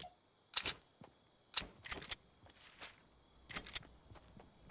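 Building pieces snap into place with sharp clicks.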